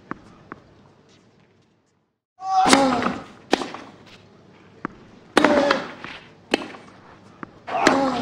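A tennis ball is struck back and forth with sharp pops of a racket.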